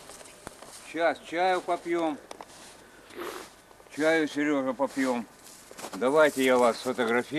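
An elderly man speaks outdoors, close by.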